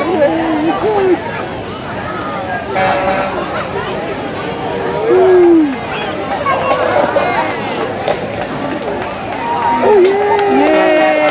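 Several people shout and call out nearby.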